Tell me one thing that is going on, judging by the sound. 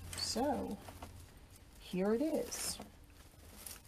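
A woman speaks briefly and calmly, close by.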